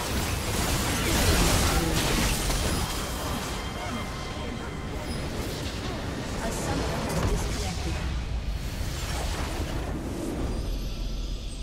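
Game spell effects crackle and explode during a fight.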